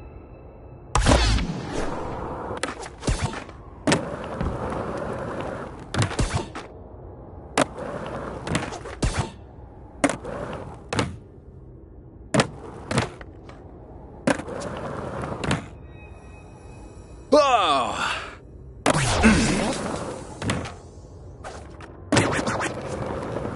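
Skateboard wheels roll and grind on ramps, with sharp clacks of the board landing.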